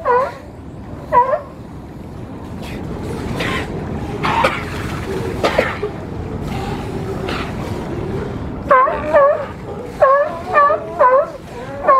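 Sea lions bark loudly in short, repeated calls.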